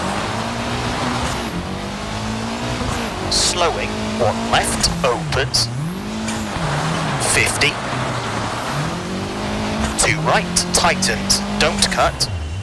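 A rally car engine revs hard, rising and dropping in pitch as the gears change.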